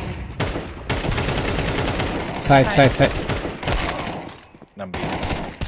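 Rifle gunfire rattles in loud bursts.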